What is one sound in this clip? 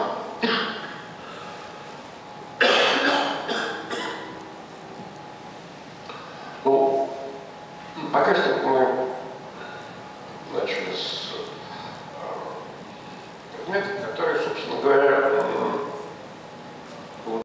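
An older man speaks calmly into a microphone, heard through loudspeakers in an echoing room.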